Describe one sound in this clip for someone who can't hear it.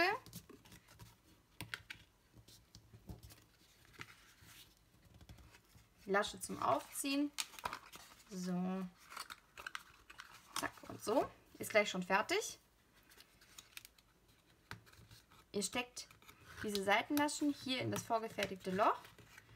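Stiff card crinkles and creases.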